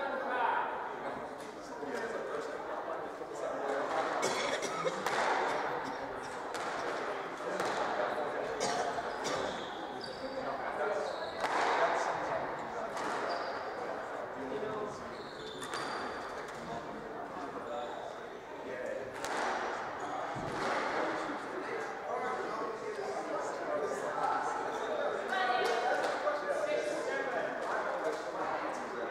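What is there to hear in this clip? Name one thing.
Shoes squeak and scuff on a wooden court floor.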